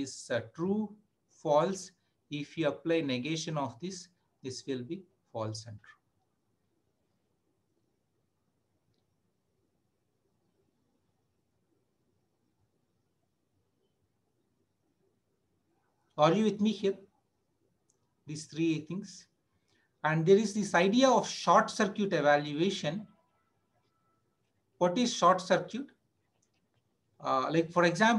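A man talks calmly through a microphone, explaining in short bursts with pauses.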